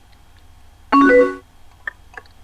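A computer chimes as a message arrives.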